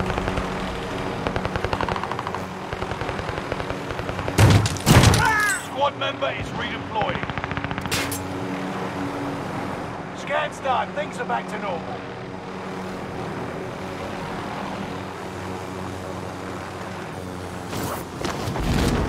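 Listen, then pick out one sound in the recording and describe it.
A helicopter's rotor thrums steadily.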